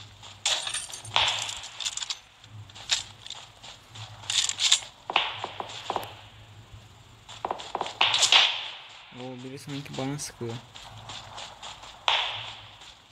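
Rifle shots crack and echo outdoors in bursts.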